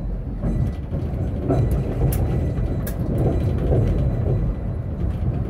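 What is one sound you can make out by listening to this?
Another tram passes close by.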